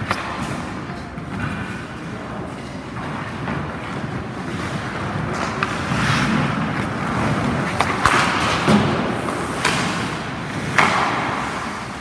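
Hockey skates scrape and carve across ice in an echoing rink.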